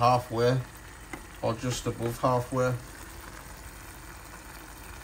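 A pan of vegetables simmers and sizzles softly.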